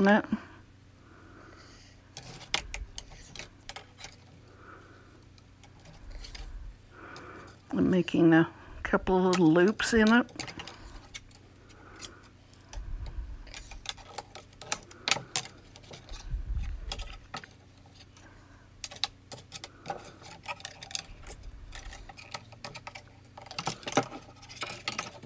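Thin wire taps, scrapes and clicks against a small cardboard box.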